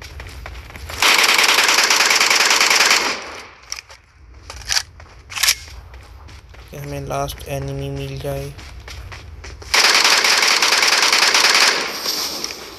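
Rapid bursts of automatic gunfire ring out loudly.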